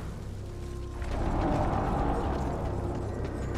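A fiery blast whooshes and roars.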